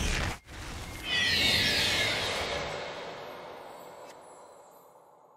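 A game chime rings out and fades.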